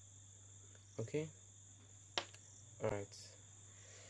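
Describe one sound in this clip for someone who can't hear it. A pair of compasses clicks as it is set down on a hard surface.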